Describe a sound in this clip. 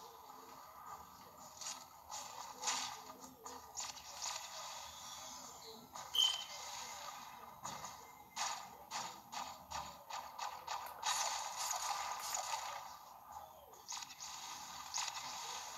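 Footsteps tap quickly across a hard floor, heard through a loudspeaker.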